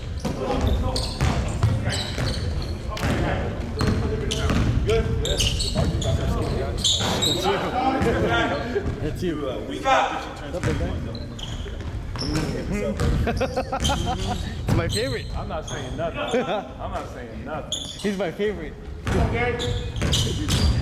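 Young players shout to each other across an echoing gym.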